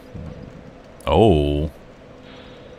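A game menu makes a soft chime as a selection is made.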